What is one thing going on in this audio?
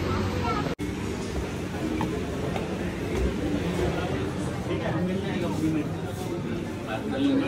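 A crowd of people chatters indoors.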